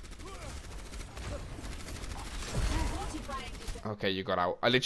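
Video game energy weapons fire and whoosh.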